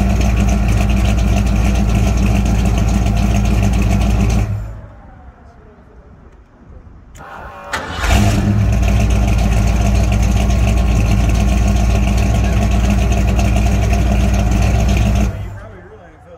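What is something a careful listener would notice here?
A 1972 Ford pickup's exhaust roars as the engine is held at high revs.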